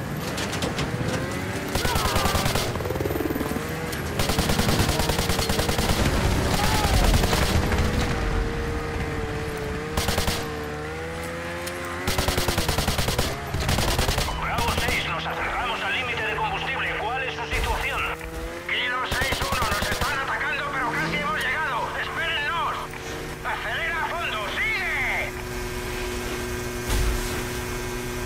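A snowmobile engine roars and revs up and down.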